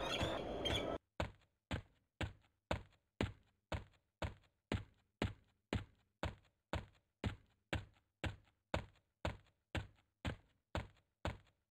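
Footsteps tread steadily and quickly on the ground.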